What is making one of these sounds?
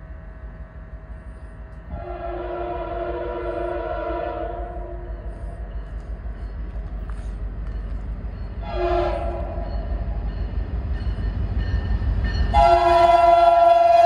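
A crossing bell rings steadily.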